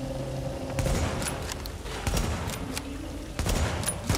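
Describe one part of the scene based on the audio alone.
A rifle fires a sharp, loud shot.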